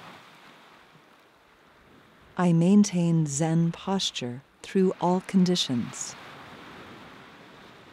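Gentle waves wash over rocks along the shore.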